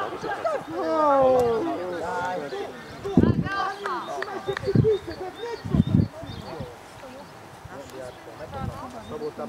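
Men shout and call out across an open field outdoors.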